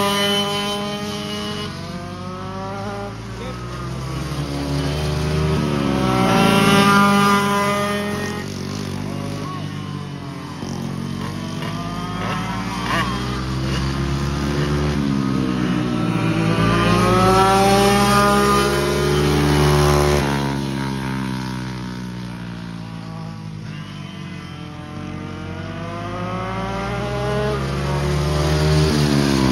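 Go-kart engines whine and rev loudly as karts race past, rising and falling in pitch.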